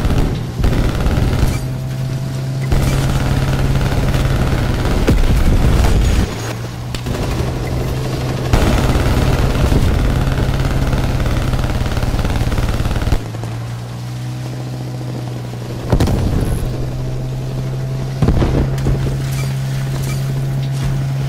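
Water splashes and rushes against a speeding boat's hull.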